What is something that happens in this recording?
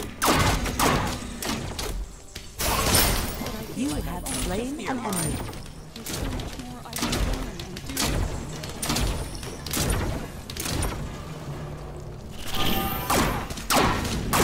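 Weapons clash and magic blasts crack in a fast fight.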